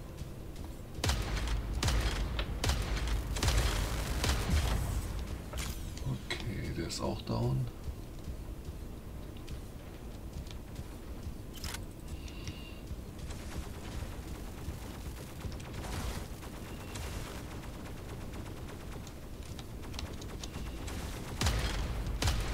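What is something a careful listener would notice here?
Heavy gunfire and energy blasts boom in bursts.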